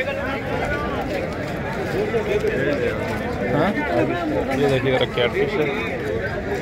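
A crowd of men chatter all around outdoors.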